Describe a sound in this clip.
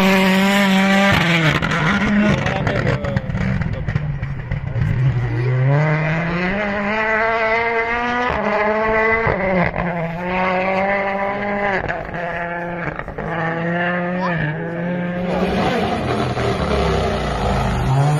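A rally car engine roars and revs hard in the distance.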